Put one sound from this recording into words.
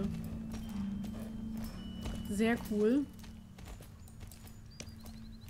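A horse's hooves clop slowly on a dirt path.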